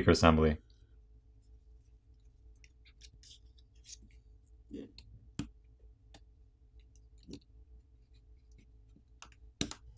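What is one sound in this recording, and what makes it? A plastic pry tool clicks and scrapes against a phone's frame.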